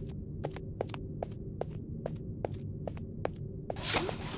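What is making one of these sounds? Footsteps tap quickly and evenly on a hard floor.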